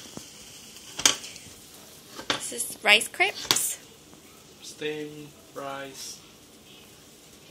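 A metal ladle scrapes and taps against a pan.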